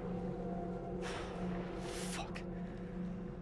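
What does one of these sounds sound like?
Water splashes sharply.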